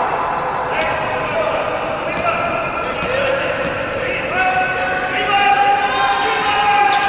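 An indoor crowd murmurs and cheers in a large echoing hall.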